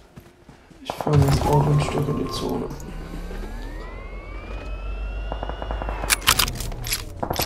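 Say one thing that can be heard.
A car engine starts and revs, rising in pitch.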